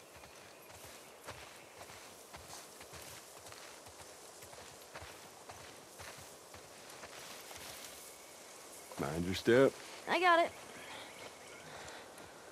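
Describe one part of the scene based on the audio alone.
Footsteps crunch softly on grass and stone.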